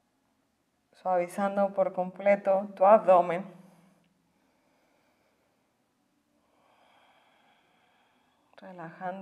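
A woman speaks calmly, giving instructions.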